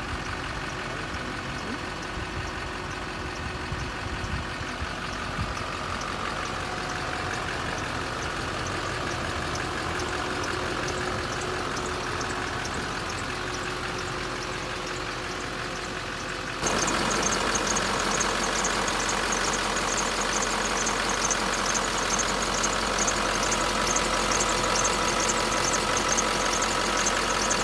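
A truck engine idles steadily, growing louder and ticking up close.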